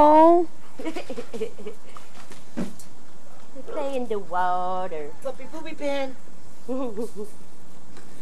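Puppies whine and yelp close by.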